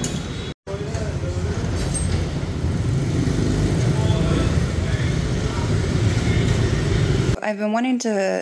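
Motorbike engines hum as they ride past on a street.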